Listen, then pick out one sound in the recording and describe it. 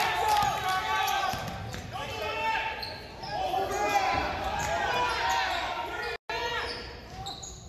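Sneakers squeak sharply and often on a wooden court.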